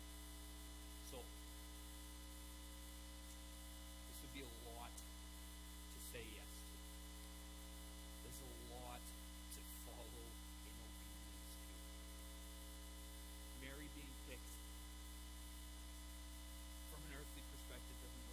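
A man speaks calmly through a microphone, with long pauses.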